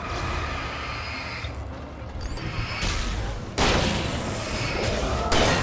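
A flare hisses and crackles as it burns.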